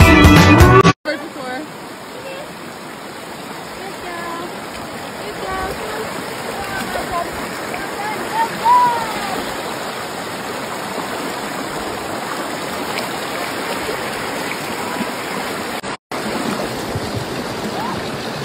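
A stream rushes loudly over rocks close by.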